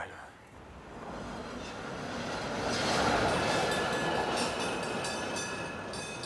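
A tram rumbles past on rails.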